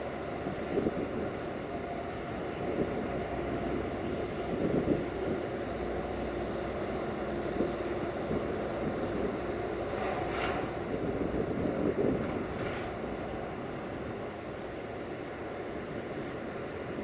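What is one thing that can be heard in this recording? Train wheels clank and squeal on the rails.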